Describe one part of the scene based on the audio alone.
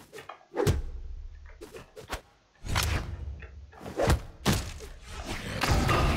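Game sound effects whoosh and thud as fighters clash.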